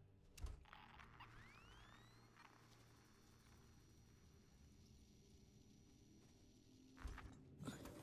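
A motion tracker beeps and hums electronically.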